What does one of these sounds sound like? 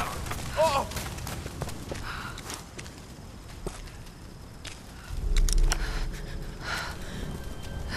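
Fire crackles and pops nearby.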